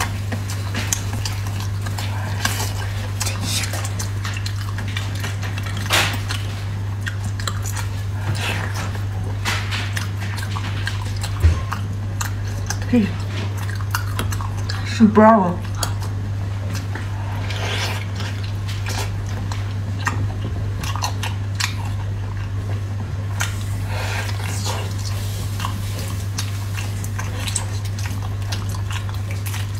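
A young woman tears apart sticky braised meat with her hands close to a microphone.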